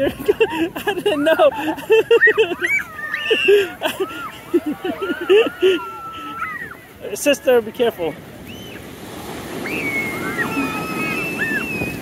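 Waves break and wash onto the shore nearby.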